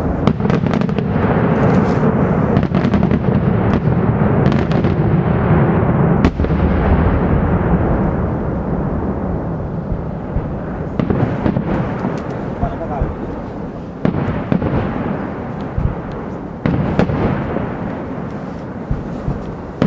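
Fireworks bang and crackle loudly overhead.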